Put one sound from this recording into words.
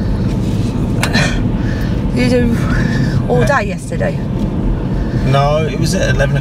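A man speaks calmly inside the car, close by.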